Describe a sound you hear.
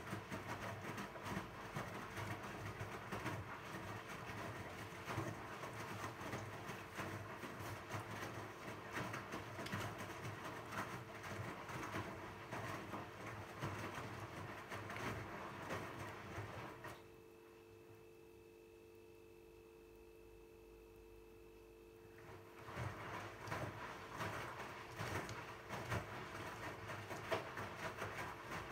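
A washing machine tumbles laundry with soft swishing and thumping.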